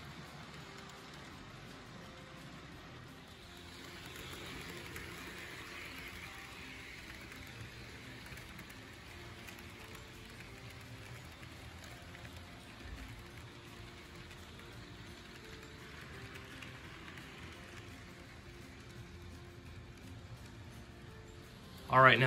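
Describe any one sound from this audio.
A model train rumbles and clatters along its tracks.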